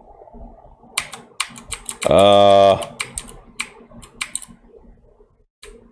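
Short electronic game sound effects blip and click.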